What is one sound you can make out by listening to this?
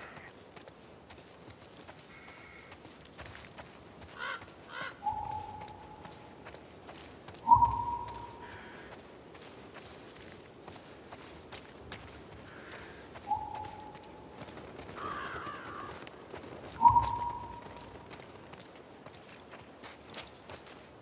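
Footsteps patter softly on wet ground at a quick pace.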